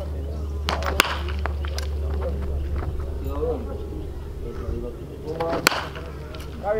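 A baseball bat cracks against a pitched ball.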